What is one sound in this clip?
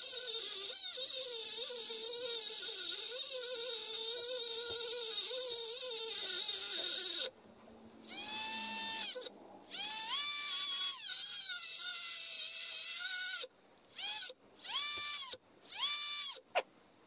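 A small rotary tool whines at high speed, revving up and down in bursts.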